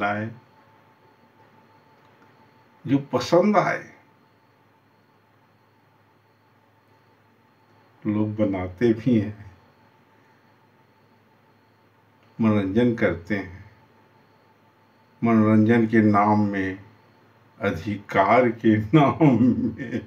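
A middle-aged man speaks close to the microphone, calmly and in short bursts with pauses.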